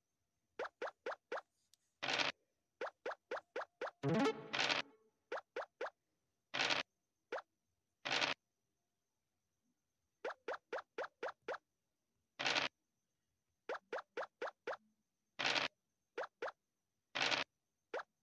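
Game pieces hop along in quick runs of short pops.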